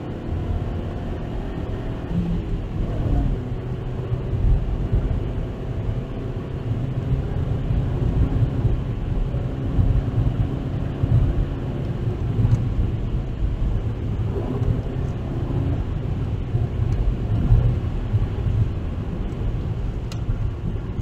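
A car engine hums steadily from inside the car, rising in pitch as it speeds up.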